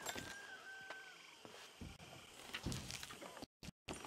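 Paper pages rustle as a book is opened.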